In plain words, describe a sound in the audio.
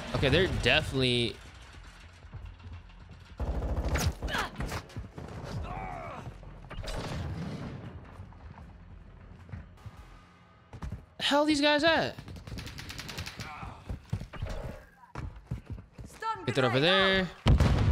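Gunfire crackles in rapid bursts from a game.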